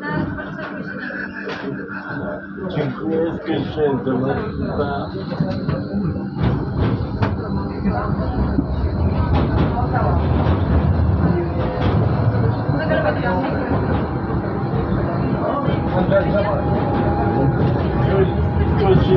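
A tram's motor hums steadily, rising in pitch as it speeds up.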